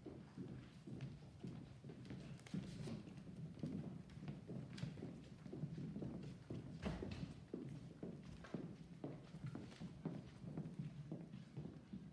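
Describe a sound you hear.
Footsteps shuffle across a hard floor in a large echoing hall.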